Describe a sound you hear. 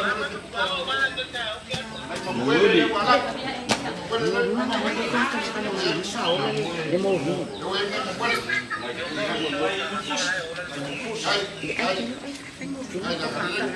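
A crowd of men and women chatter.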